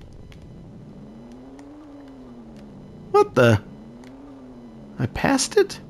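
A game vehicle's engine hums and changes pitch as it speeds up and slows down.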